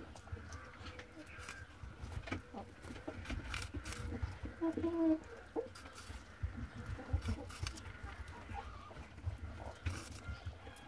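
A rabbit crunches and nibbles on a piece of apple close by.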